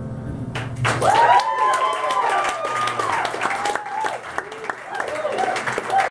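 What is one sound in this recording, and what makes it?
A keyboard plays chords.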